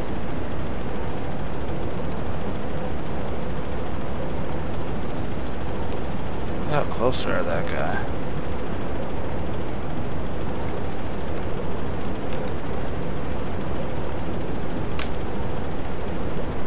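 Sea water rumbles and washes steadily.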